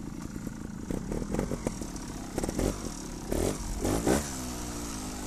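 A trials motorcycle engine revs in short bursts.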